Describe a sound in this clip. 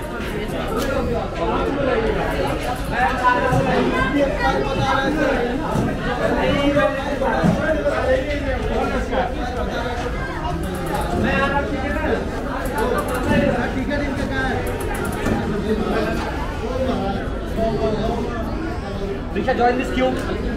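A crowd of men and women chatter nearby, echoing in a large hall.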